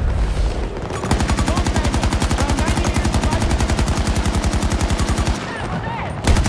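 A machine gun fires in a long rapid burst.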